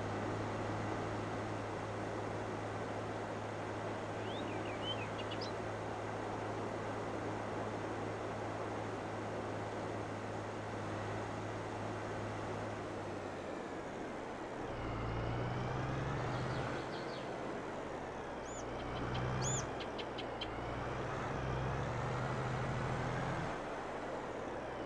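A tractor engine drones steadily, its pitch shifting as it turns.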